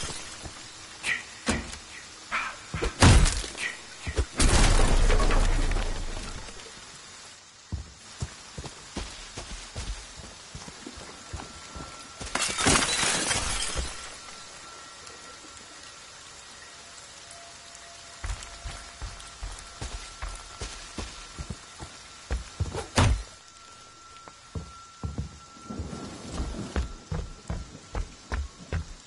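Heavy footsteps thud on wooden floors and ground.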